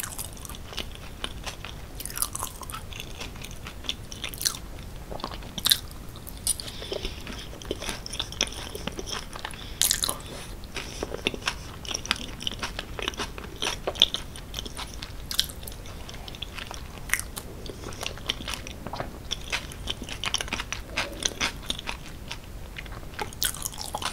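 A woman chews soft, saucy food close to a microphone with wet smacking sounds.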